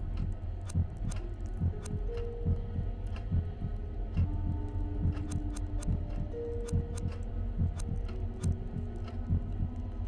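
Small metal parts click as fuses are swapped.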